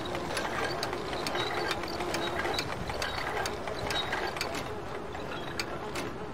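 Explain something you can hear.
A wooden crate creaks as it swings on its ropes.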